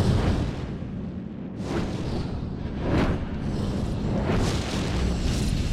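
A torch fire crackles softly.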